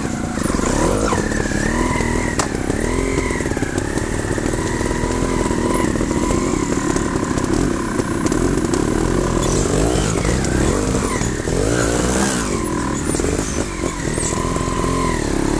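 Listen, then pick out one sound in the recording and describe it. A second motorcycle engine revs further off.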